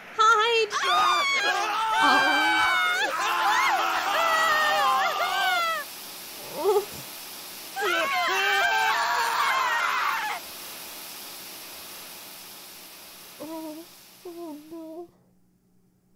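Gas hisses steadily out of a row of shower heads.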